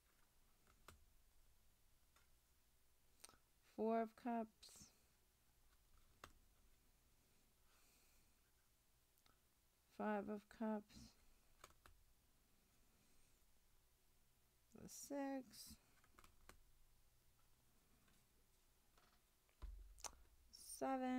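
Playing cards slide and tap softly against each other.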